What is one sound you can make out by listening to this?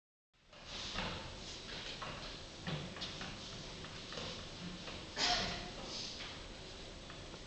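A young woman talks casually nearby in a large hall.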